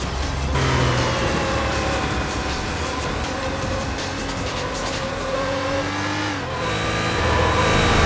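Tyres squeal as a car slides through a bend.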